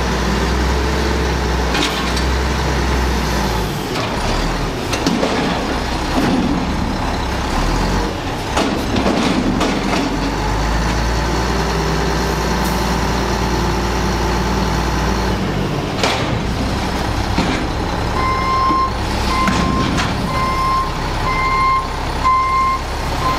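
A garbage truck engine rumbles and roars steadily.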